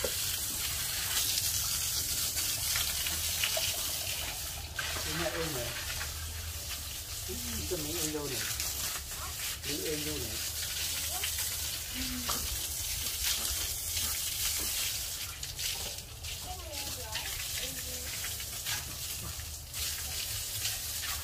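Water from a hose splashes onto a concrete floor.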